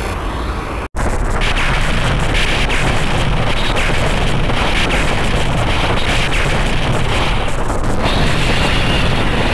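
Explosions boom and rumble in a video game.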